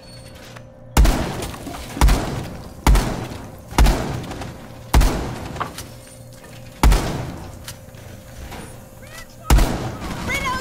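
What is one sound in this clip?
A gun fires single loud shots a second or so apart.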